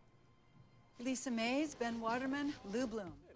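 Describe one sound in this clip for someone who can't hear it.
A woman speaks loudly and with emotion, close by.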